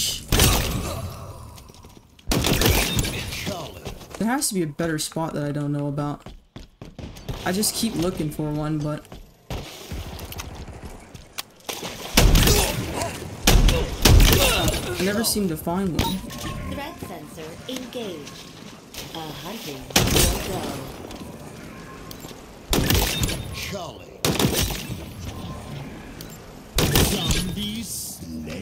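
Gunfire bursts out in short rapid volleys.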